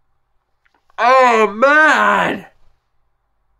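A young man wails loudly and tearfully, close by.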